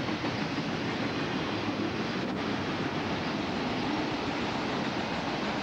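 A long freight train rumbles and clatters steadily past, close by.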